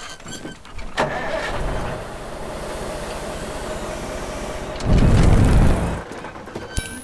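A heavy truck engine rumbles.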